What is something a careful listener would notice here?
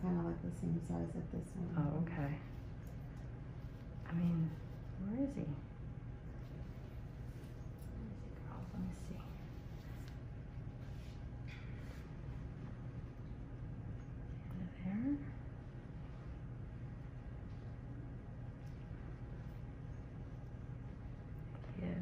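A small metal tool scrapes and presses softly against skin.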